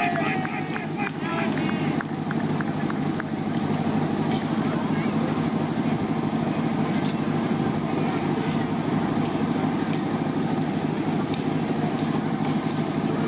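A pump engine runs with a steady loud rumble outdoors.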